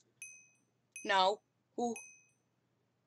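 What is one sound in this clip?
A boy speaks briefly and with animation, close to a microphone.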